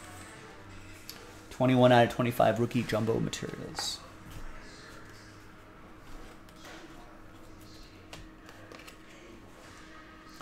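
Trading cards in plastic cases click and rustle in hands.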